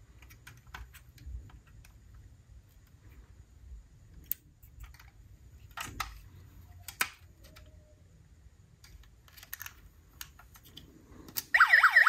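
Small plastic doors and parts of a toy car click as fingers open and shut them.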